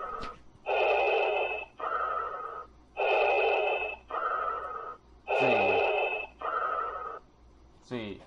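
A man breathes loudly and rhythmically through a mask, close by.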